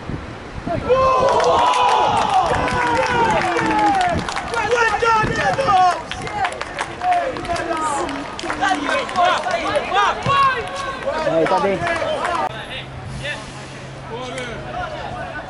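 A small group of men shout and cheer excitedly nearby, outdoors.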